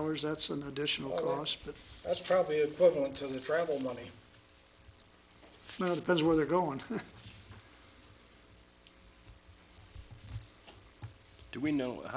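A man speaks calmly through a microphone in a room with some echo.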